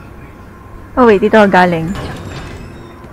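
A young woman exclaims loudly into a close microphone.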